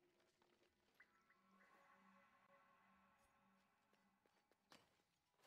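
A shimmering magical chime rings out.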